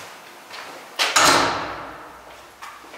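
A door swings shut with a heavy bang that echoes briefly.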